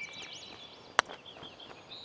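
A putter taps a golf ball once.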